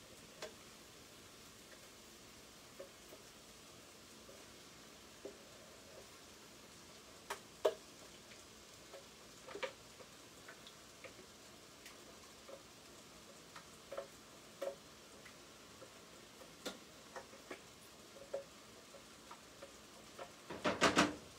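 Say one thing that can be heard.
A sifter taps and rattles over a pot in light, uneven knocks.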